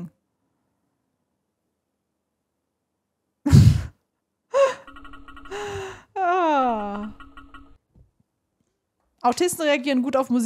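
Xylophone notes ring out briefly.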